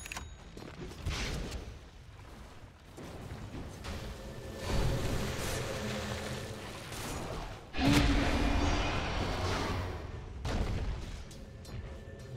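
Magic spells and weapon hits crash and boom in bursts during a fantasy battle.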